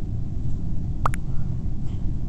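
A short electronic chat message blip sounds once.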